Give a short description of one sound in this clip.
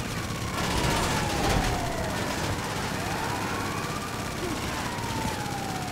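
Car tyres screech on asphalt.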